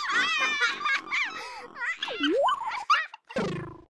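Young children laugh brightly.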